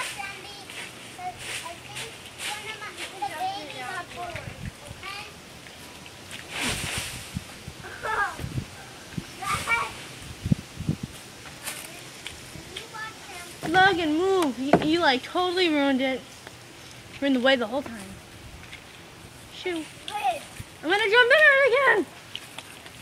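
Young children shout and squeal with excitement nearby, outdoors.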